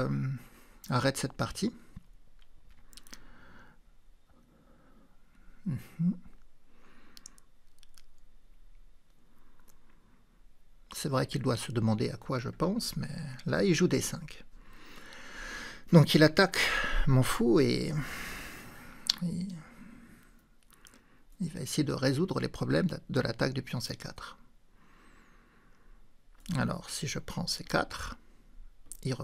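A man talks calmly and thoughtfully into a close microphone, with pauses.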